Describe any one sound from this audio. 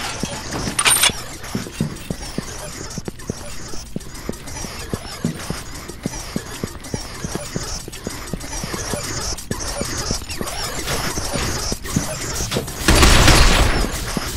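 Heavy boots thud quickly on a metal floor.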